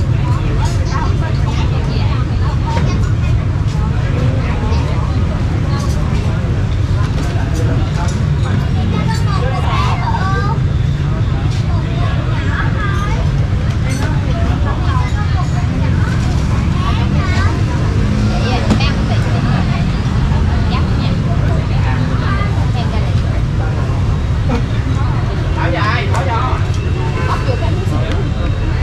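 A metal spoon scrapes and clinks against a bowl.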